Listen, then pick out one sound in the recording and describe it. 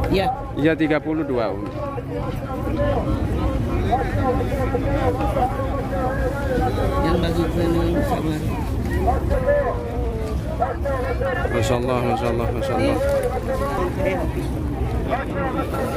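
Several people talk at once nearby, outdoors.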